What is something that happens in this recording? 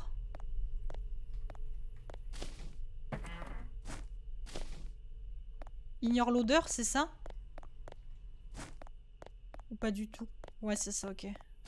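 Footsteps tap steadily on pavement.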